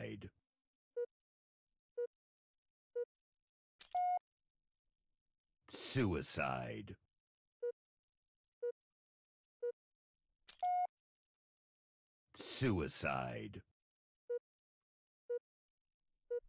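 Short electronic beeps sound at a steady one-second pace, counting down.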